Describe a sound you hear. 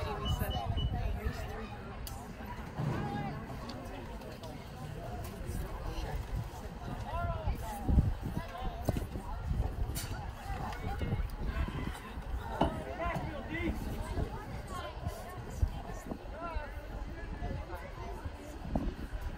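A crowd of people talks and calls out outdoors.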